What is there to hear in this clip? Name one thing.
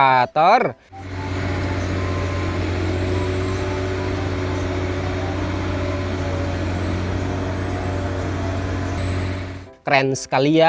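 A heavy crane engine rumbles steadily nearby.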